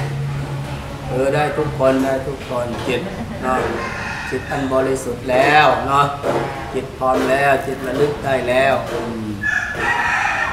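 An elderly man chants in a low, steady voice nearby.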